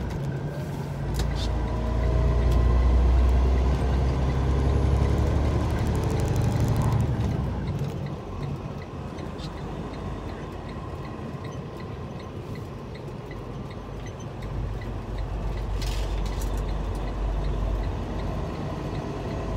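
A truck engine rumbles low and steady, growing louder then easing off.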